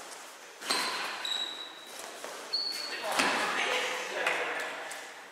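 Badminton rackets smack a shuttlecock in an echoing hall.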